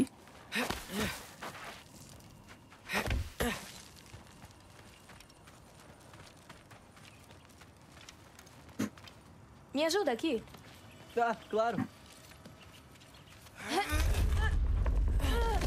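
A young woman speaks into a close microphone in short bursts.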